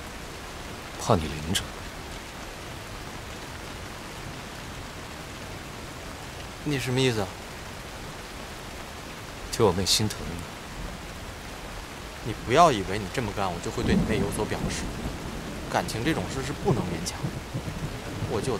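Another young man answers quietly and tensely, close by.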